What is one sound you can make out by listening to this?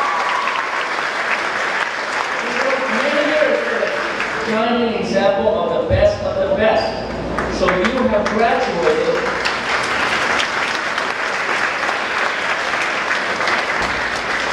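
An audience murmurs and chatters throughout the hall.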